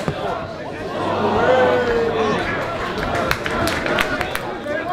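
Spectators cheer and shout as play nears the goal.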